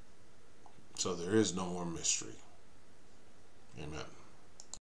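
A middle-aged man speaks calmly and close to the microphone, with short pauses.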